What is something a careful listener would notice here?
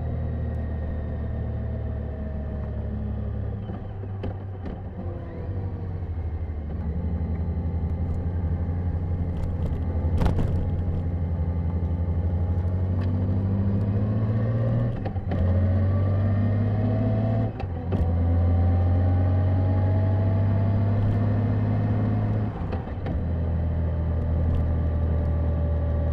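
A motorcycle engine hums steadily and rises in pitch as it speeds up.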